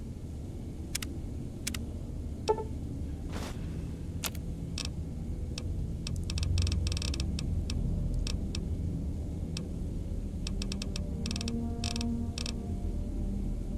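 Soft clicks tick in quick succession as menu items are selected.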